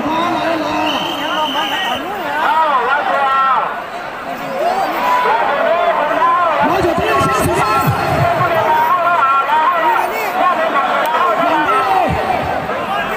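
A crowd of men shouts and cheers excitedly outdoors.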